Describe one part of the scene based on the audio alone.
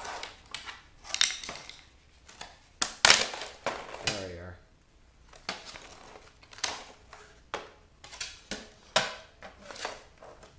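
Hard plastic parts clatter and knock on a concrete floor.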